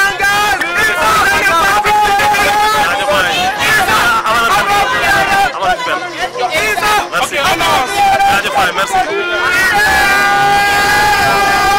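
A crowd of young men shouts and cheers nearby.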